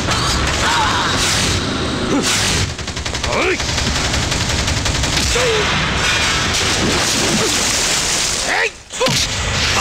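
Punches land with heavy thuds during a brawl.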